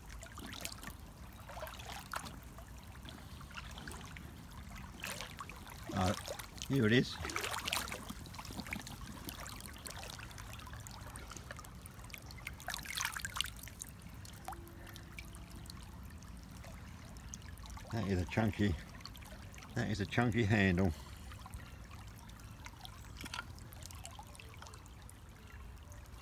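Shallow water trickles and babbles over stones.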